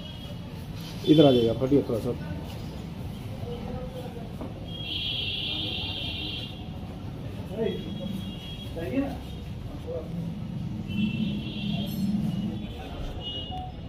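Men talk nearby in low voices.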